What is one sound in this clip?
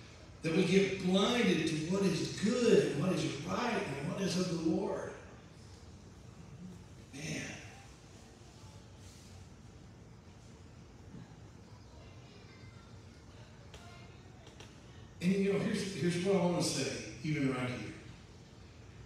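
A man speaks with animation through a microphone in a hall that echoes a little.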